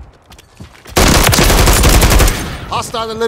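Rapid gunfire bursts sound close by.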